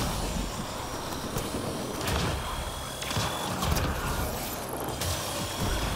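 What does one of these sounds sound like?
A crackling energy blast fizzes.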